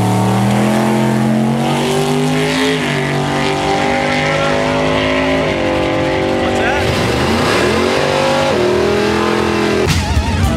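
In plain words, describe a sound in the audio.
A race car engine roars loudly as the car launches, climbing in pitch and dropping sharply at each gear change.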